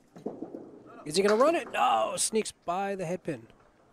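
A small candlepin ball crashes into wooden pins.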